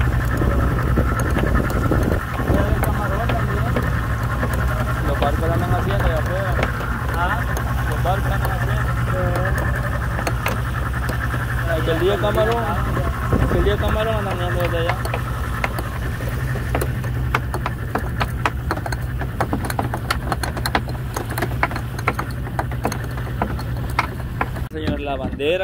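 An outboard motor drones steadily.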